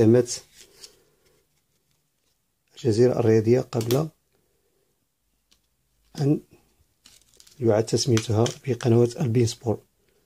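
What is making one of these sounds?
Plastic cards tap softly onto a table.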